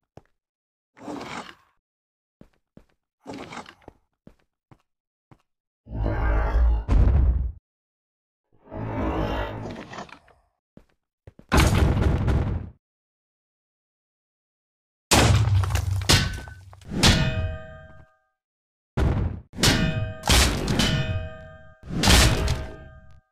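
Game monsters growl and groan in bursts.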